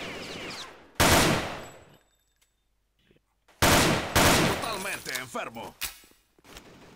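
A rifle fires in loud, rapid bursts.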